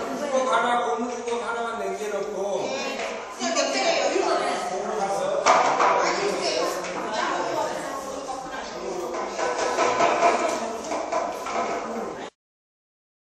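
Several middle-aged women chatter and call out to one another nearby.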